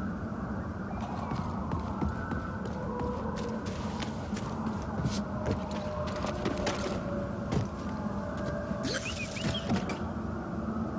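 Footsteps crunch over leaves and dirt.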